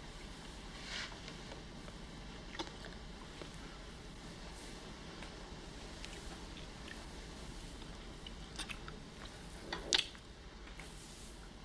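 A couple kisses softly, with quiet lip smacks.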